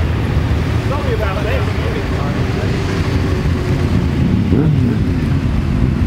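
A motorcycle engine revs up sharply close by.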